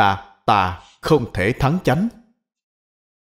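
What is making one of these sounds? An elderly man speaks calmly and warmly into a microphone.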